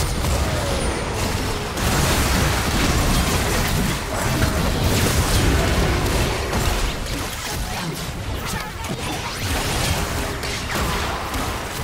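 Magic spells crackle, whoosh and boom in a fast, busy fight.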